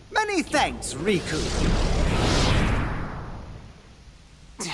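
A deep whooshing rush swells and fades away.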